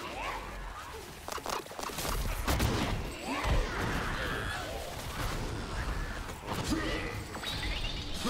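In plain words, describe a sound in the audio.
Electric blasts crackle and zap.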